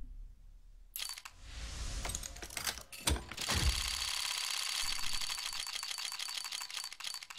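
Rapid clicking ticks as a prize reel spins.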